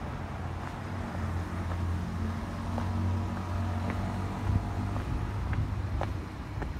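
A vehicle engine rumbles past nearby, growing louder and then fading.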